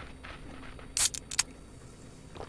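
A drink can hisses open.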